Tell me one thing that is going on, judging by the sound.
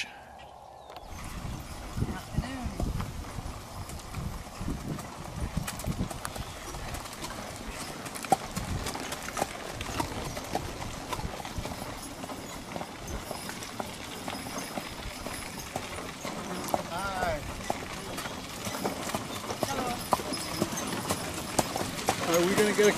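Horse hooves clop on a dirt track.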